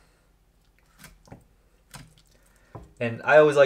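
A knife cuts through food on a board.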